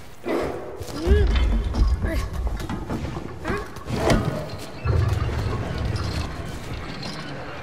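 A large creature rumbles with a deep growl.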